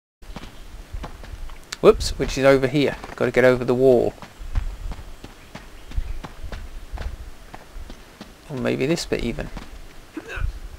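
Footsteps run over grass and stone.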